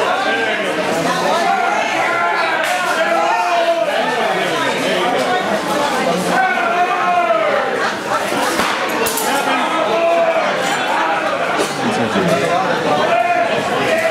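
A crowd murmurs and chatters throughout a large echoing hall.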